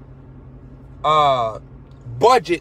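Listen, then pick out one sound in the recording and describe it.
A young man sings a short drawn-out note.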